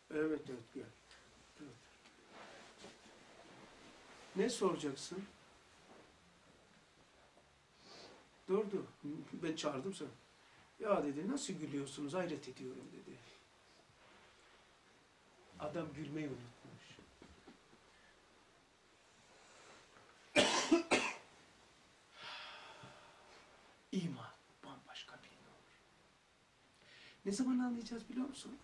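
An older man speaks calmly and slowly, close by, with pauses.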